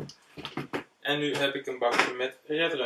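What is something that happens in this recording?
A young man speaks up close.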